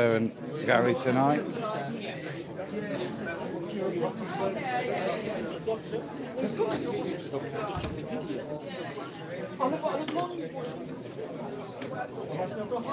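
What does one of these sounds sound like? Several men talk with one another nearby.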